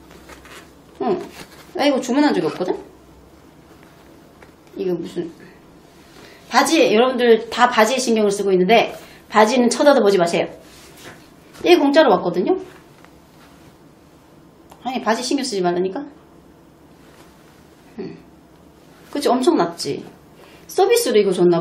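A young woman talks with animation close to a microphone, in short bursts with pauses.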